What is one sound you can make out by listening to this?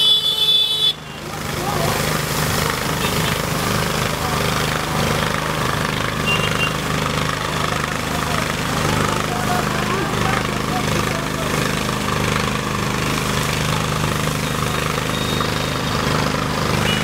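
Water sprays hard from a fire hose with a steady hiss.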